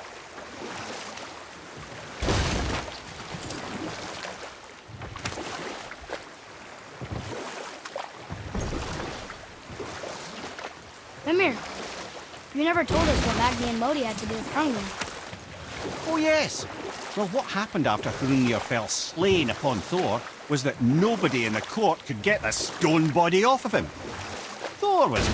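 Water rushes and hisses along a small boat's hull.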